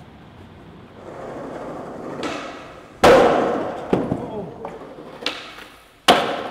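Skateboard wheels roll over hard ground.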